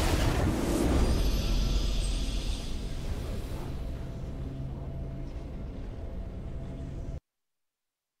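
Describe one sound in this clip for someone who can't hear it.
A triumphant game fanfare swells.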